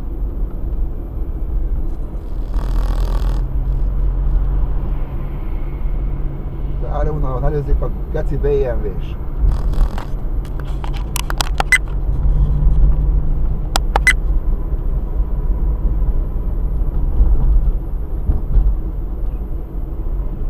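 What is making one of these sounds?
A car's engine hums steadily while driving.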